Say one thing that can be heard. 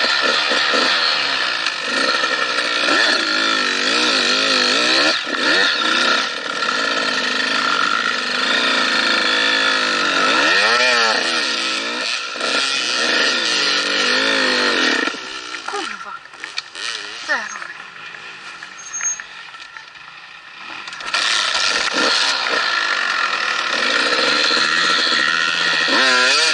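A dirt bike engine revs hard up close, rising and falling in pitch.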